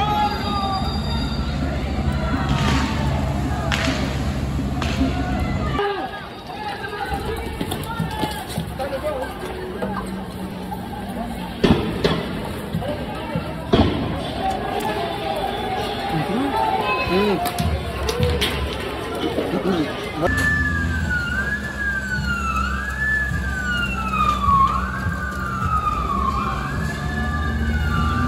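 A water cannon jet blasts onto pavement with a heavy rushing roar.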